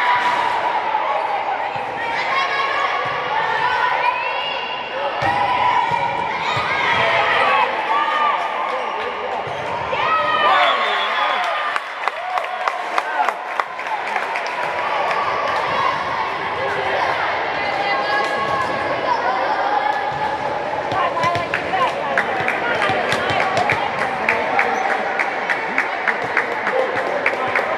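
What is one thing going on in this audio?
A volleyball thuds off hands and arms.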